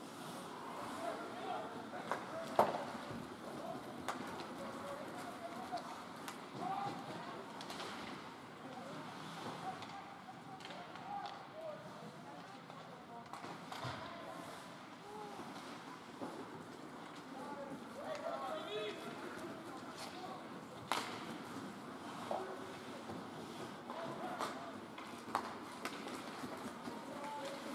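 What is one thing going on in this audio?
Hockey skates scrape across ice.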